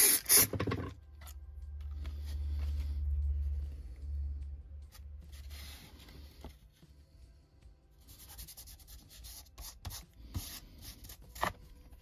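Paper rustles and crinkles under fingers.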